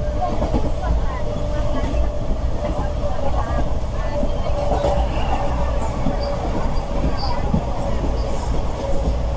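Wind rushes loudly past an open train window.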